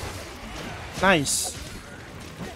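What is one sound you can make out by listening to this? A game monster roars loudly.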